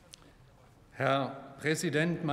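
A man begins speaking through a microphone in a large hall.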